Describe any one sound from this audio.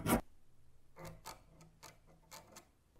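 A metal rod scratches lightly in a threaded hole.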